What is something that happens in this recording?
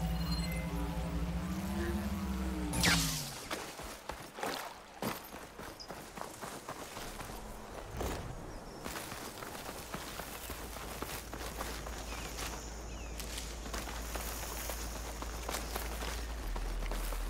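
Footsteps rustle quickly through grass and leafy plants.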